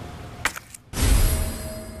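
Paper pages rustle as a binder opens.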